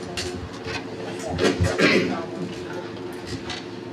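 A chair scrapes on the floor.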